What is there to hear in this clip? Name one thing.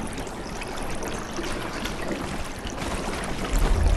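Water swirls and bubbles as a figure swims underwater.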